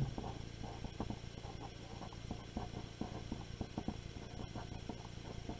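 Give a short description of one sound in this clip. A pen scratches across paper as it writes.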